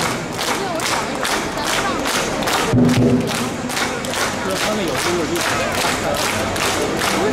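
A large outdoor crowd chatters and cheers.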